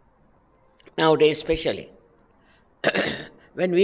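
A middle-aged woman speaks warmly and calmly, close to the microphone.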